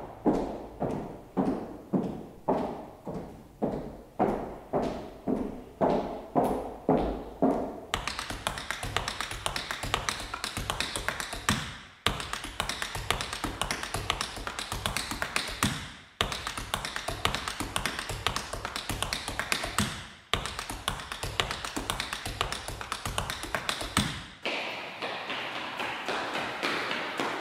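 A piano plays in a large echoing hall, slow repeated chords at first and then fast running notes.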